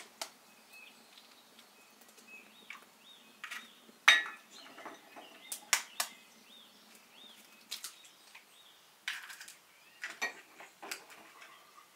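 Eggshells crack against a bowl's rim.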